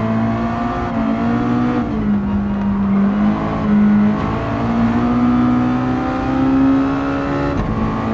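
A racing car engine roars, its pitch rising and dropping as the gears shift.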